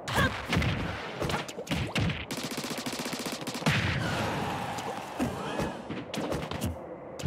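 Punches and kicks land with sharp smacking hits.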